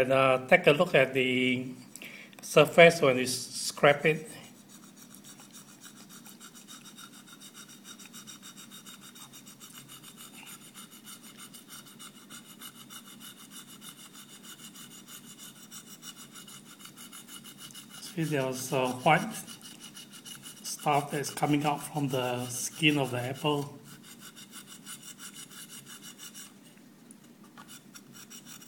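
A knife blade scrapes across the skin of an apple.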